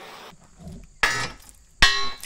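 A hammer clangs against a steel beam.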